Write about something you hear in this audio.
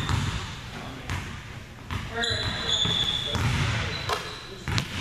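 A basketball bounces with hollow thuds on a wooden floor in a large echoing gym.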